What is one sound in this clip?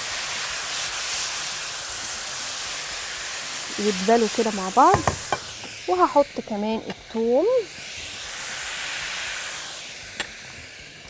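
Vegetables sizzle and hiss in a hot frying pan.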